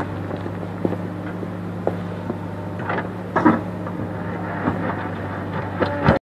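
A diesel engine of a backhoe loader rumbles steadily nearby.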